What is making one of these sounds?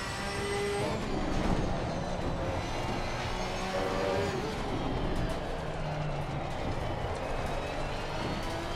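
A racing car's engine slows and drops in pitch through the corners.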